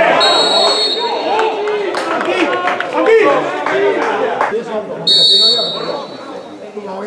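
A referee's whistle blows in short sharp blasts.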